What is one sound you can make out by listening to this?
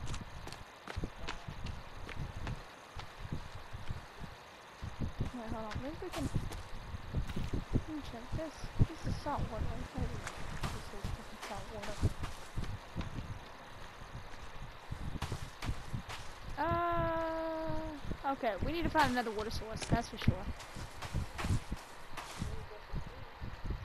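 Footsteps crunch over dry grass and sand.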